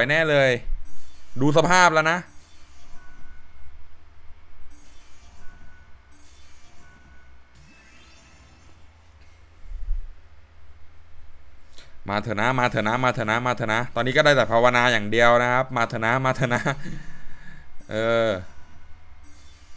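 Game win chimes and jingles ring out in bursts.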